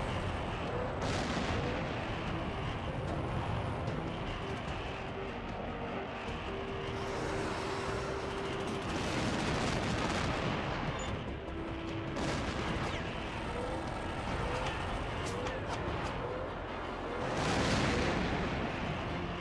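Missiles whoosh past in quick bursts.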